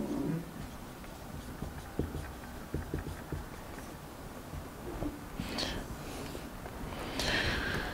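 A marker squeaks on paper.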